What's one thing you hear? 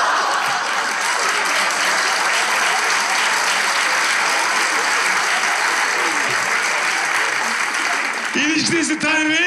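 An audience laughs and applauds loudly in a large hall.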